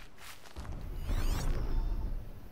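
A shimmering electronic tone sweeps up and down.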